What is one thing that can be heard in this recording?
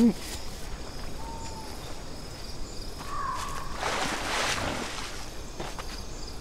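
Footsteps of a large creature patter on soft ground.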